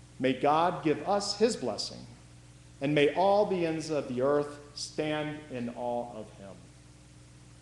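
An elderly man speaks with animation through a microphone in a large echoing room.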